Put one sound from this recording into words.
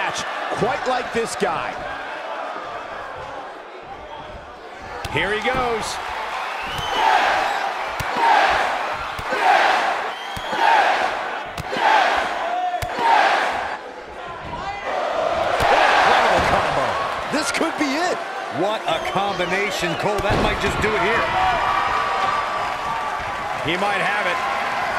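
A crowd cheers loudly in a large echoing arena.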